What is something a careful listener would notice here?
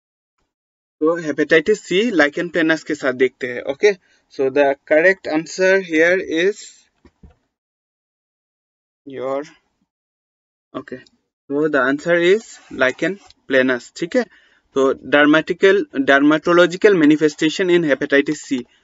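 A man speaks steadily and calmly through an online call microphone.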